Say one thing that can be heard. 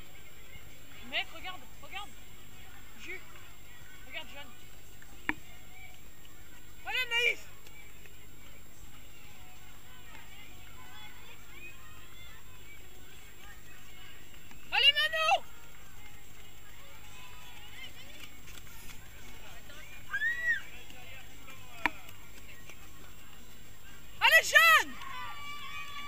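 Young spectators shout and cheer outdoors in short bursts.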